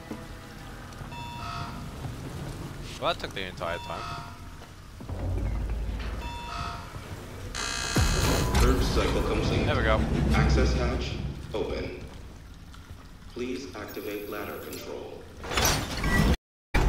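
A man talks to a microphone with animation.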